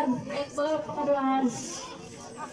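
A woman speaks loudly close by.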